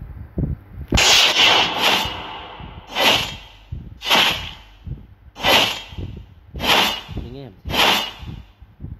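Sword strikes clash in quick, steady succession.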